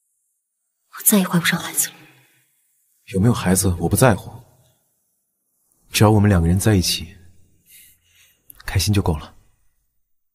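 A young man speaks calmly and warmly.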